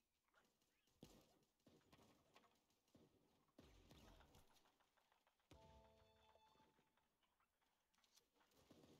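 Video game gunfire pops in short bursts.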